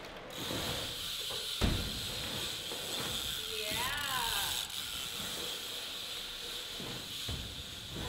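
Bike tyres roll and hum on a concrete ramp.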